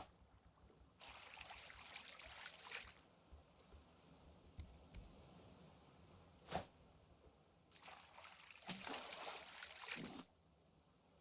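A hook splashes into water and is reeled back.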